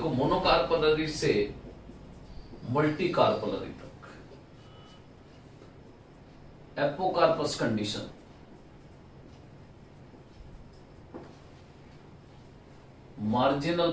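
A middle-aged man speaks calmly and clearly, in short bursts with pauses, close by.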